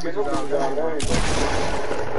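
A gun fires several loud shots.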